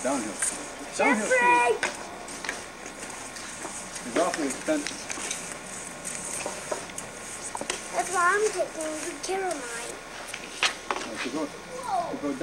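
Young children talk and call out excitedly nearby.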